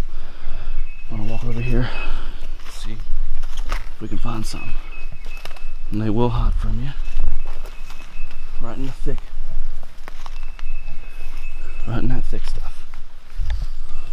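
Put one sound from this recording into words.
Footsteps rustle through low plants and twigs.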